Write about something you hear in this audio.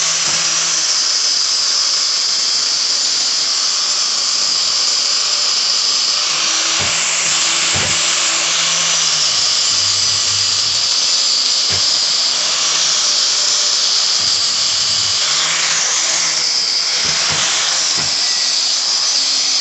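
An angle grinder whines loudly as it grinds a metal pipe.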